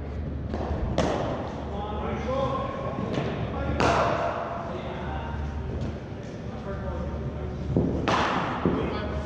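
A cricket ball knocks sharply off a bat, echoing in a large hall.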